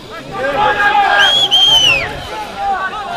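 A referee blows a whistle in a short shrill blast.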